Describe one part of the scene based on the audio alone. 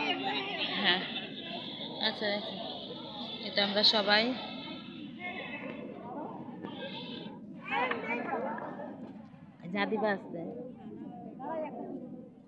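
A crowd of women chatter nearby.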